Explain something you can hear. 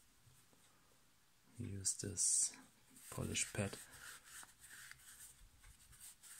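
A cloth rubs softly against a small metal part.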